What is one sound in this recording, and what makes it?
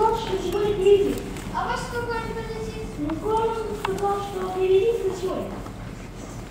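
Children speak loudly on a stage, heard from the audience.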